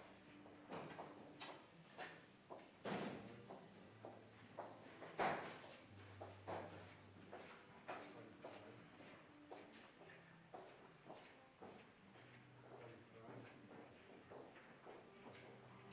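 A man murmurs quietly at a distance.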